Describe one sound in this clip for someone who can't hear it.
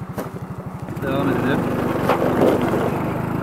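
A scooter engine revs up louder as the scooter pulls away.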